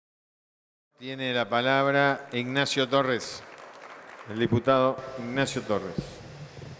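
An older man speaks calmly into a microphone in a large echoing hall.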